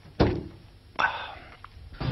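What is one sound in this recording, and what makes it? A spoon clinks against a dish.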